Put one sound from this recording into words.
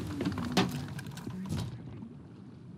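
Waves splash against a wooden ship.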